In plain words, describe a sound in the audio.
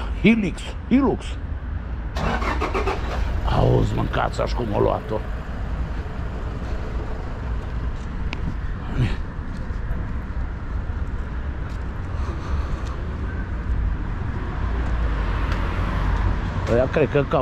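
Wind buffets and rumbles steadily as a rider moves along a street.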